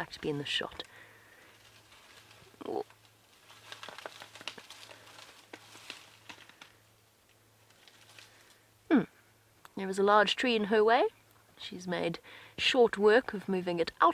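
An elephant rustles and snaps branches as it feeds.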